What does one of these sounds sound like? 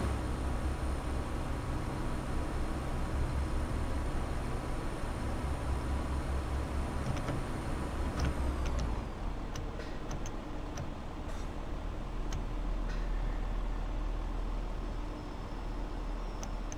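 Train wheels rumble and click over rail joints.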